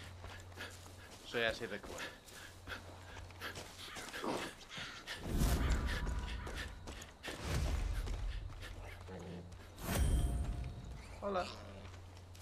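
Footsteps crunch steadily over dirt and grass.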